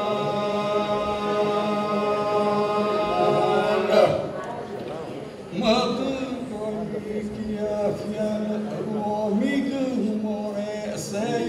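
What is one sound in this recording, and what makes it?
A group of men sing together in harmony, heard through a hall's loudspeakers.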